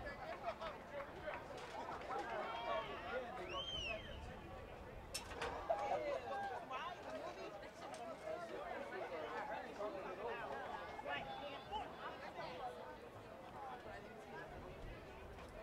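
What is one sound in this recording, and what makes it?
A crowd of people talks and shouts nearby outdoors.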